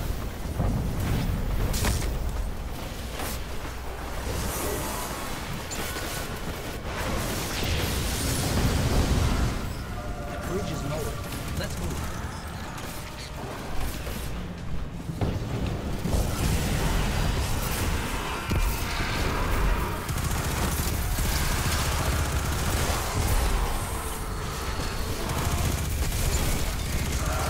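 Gunfire and energy blasts crackle and boom in quick bursts.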